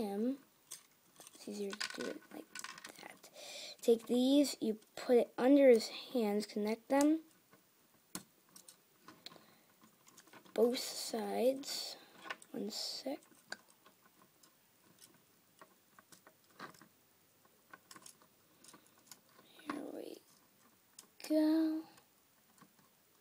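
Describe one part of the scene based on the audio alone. Small plastic bricks click and rattle as hands press them together.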